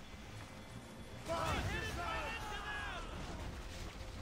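Cannons boom across the water.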